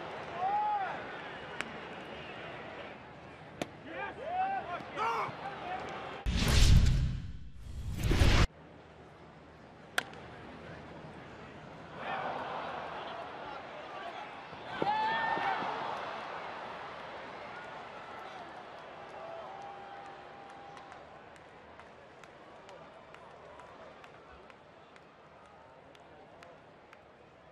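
A large stadium crowd murmurs outdoors.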